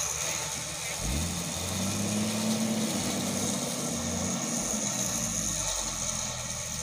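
An off-road SUV's engine revs as it pulls on a tow rope.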